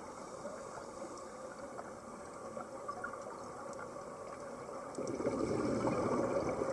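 A scuba diver's exhaled bubbles gurgle and rush underwater.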